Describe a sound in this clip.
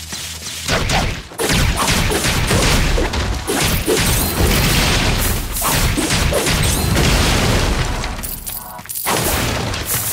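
Sword slashes and energy blasts strike in quick bursts.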